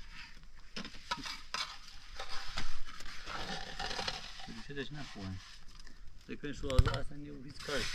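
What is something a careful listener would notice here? A concrete block scrapes and knocks onto a wall.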